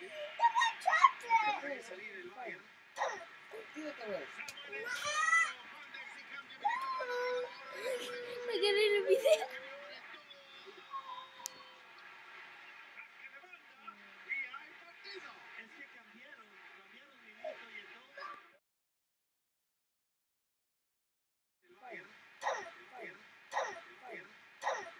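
Teenagers talk excitedly close by.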